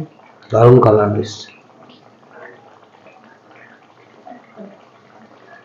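A thick sauce bubbles gently in a pot.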